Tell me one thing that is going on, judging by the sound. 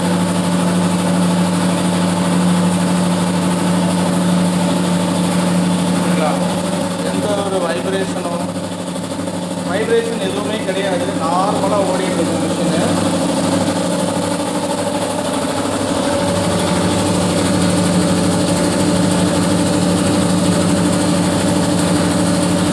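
An air compressor motor hums and drones steadily close by.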